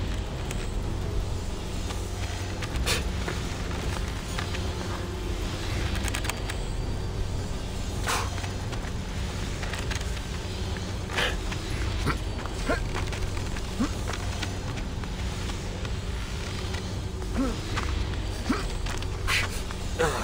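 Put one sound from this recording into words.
Hands and feet scrape and grip on rock during a climb.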